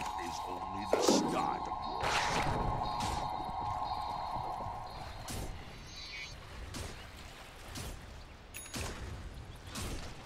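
Magical spell blasts whoosh and crackle in bursts.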